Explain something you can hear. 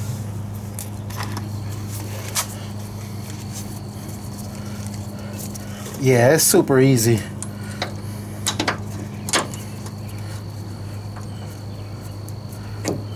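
Metal tools click and knock against an engine.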